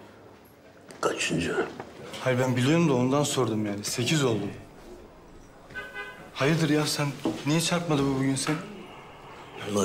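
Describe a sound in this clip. A young man speaks calmly and earnestly close by.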